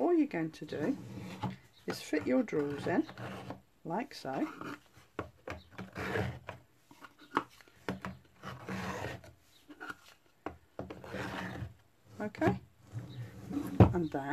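Cardboard pieces slide and rustle as drawers are fitted into a box.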